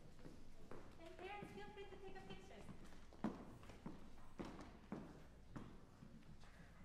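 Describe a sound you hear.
A woman speaks calmly in an echoing hall.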